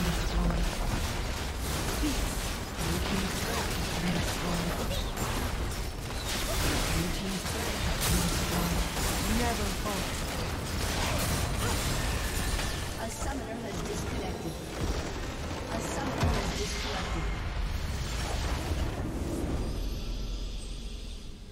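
Spells, blasts and weapon hits crash together in a loud, busy fight.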